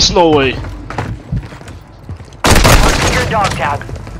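Explosions boom and rumble.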